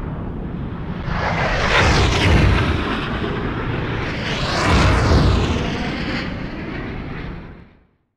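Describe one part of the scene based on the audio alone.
A jet roars past close by and fades.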